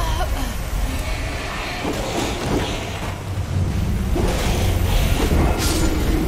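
A magical blast crackles and bursts.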